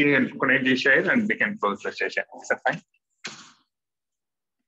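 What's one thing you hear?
A man speaks calmly over an online call through a headset microphone.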